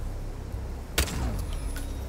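A silenced pistol fires a single shot.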